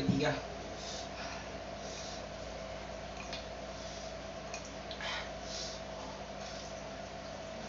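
A young man slurps and chews noodles.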